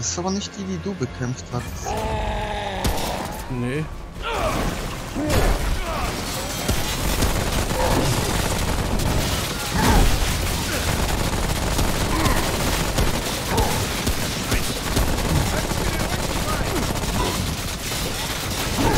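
A monster roars and growls.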